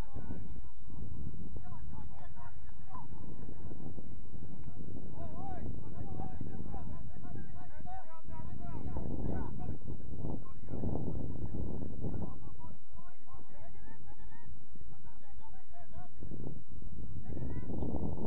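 Young players shout and call to each other from across an open field.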